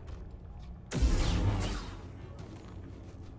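A lightsaber ignites with a sharp buzzing hum.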